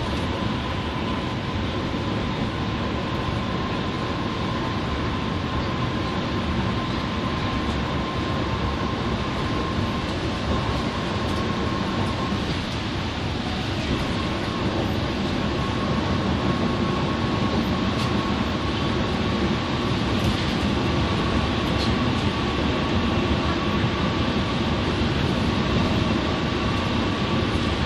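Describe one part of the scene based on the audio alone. A bus engine drones steadily from inside the cabin.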